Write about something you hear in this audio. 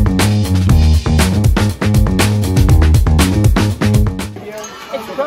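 Music with a heavy beat plays loudly.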